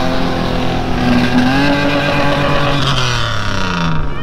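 Tyres churn and splash through mud.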